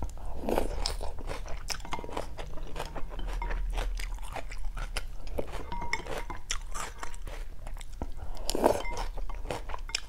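A woman slurps noodles loudly up close.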